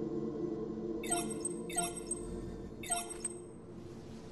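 Short bright chimes ring out one after another.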